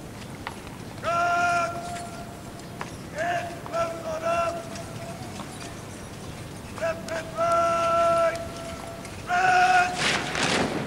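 A man shouts long, drawn-out parade commands outdoors.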